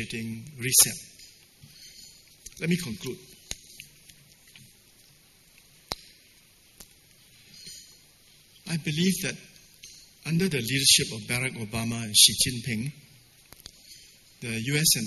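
An elderly man speaks through a microphone and loudspeakers, calmly and with pauses.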